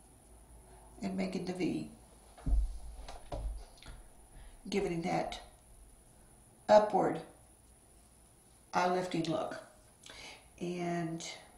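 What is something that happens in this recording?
A woman talks calmly and close to a microphone, in short bursts.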